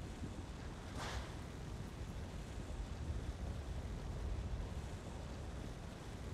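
A dragon breathes a roaring gust of fire.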